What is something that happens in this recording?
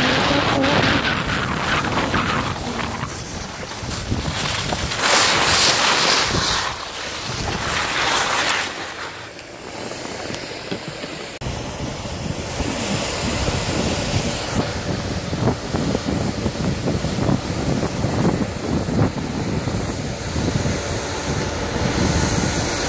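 Wind rushes loudly past.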